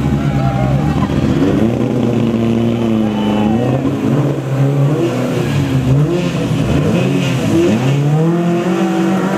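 Rally car engines rev hard and roar loudly.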